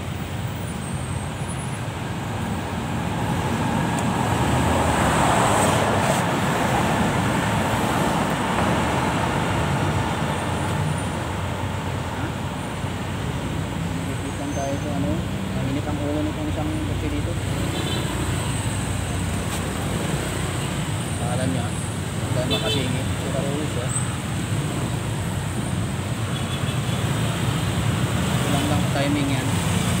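Car engines idle and rumble in slow traffic nearby.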